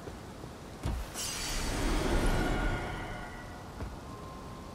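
A bright magical chime swells and shimmers, then fades.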